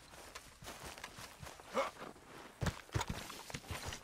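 Footsteps run quickly over grass and stones.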